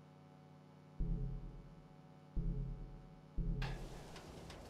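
Soft menu tones chime several times.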